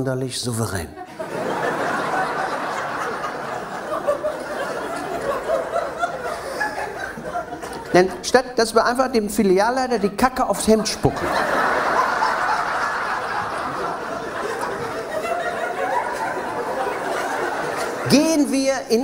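A large audience laughs loudly.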